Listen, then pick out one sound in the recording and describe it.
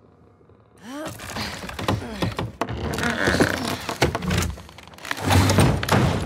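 Two young women grunt and strain as they push.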